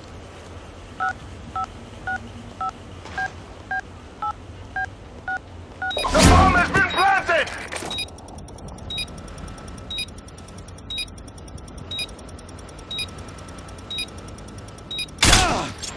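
A bomb beeps at a steady pace as it is planted and ticks down.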